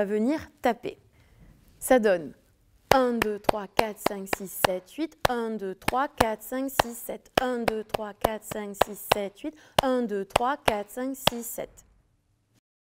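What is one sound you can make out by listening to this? A young woman claps her hands in a steady rhythm.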